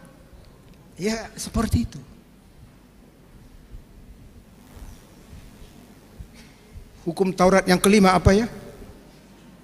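A middle-aged man speaks with animation into a microphone, heard through a loudspeaker in an echoing hall.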